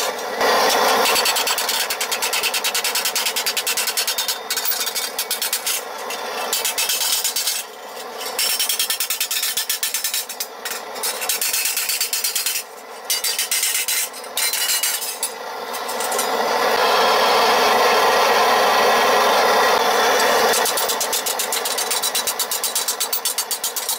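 A hammer rapidly pounds sheet metal against a steel block with ringing clangs.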